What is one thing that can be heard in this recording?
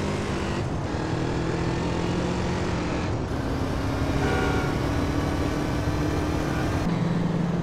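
A motorcycle engine drones steadily as the bike speeds along.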